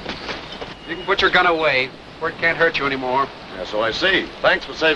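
A man calls out loudly outdoors.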